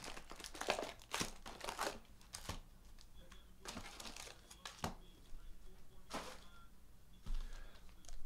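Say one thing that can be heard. Card packs rustle and tap as they are handled.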